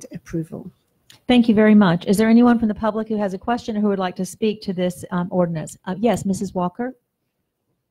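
A woman speaks clearly and steadily into a microphone.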